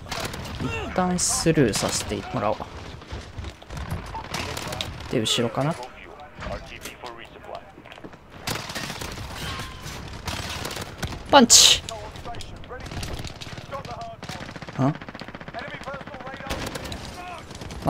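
Gunfire rattles in quick bursts, close by.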